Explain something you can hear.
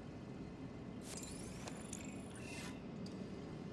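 A game menu opens with electronic beeps and whirs.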